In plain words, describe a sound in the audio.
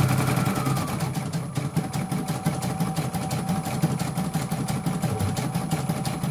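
An embroidery machine hums and taps rapidly as its needle stitches.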